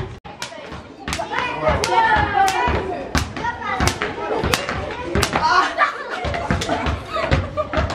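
A jump rope slaps rhythmically on pavement.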